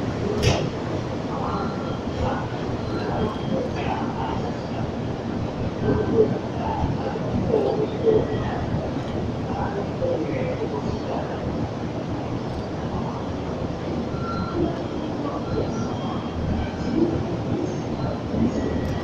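A train rumbles and clatters past close by, echoing in a station.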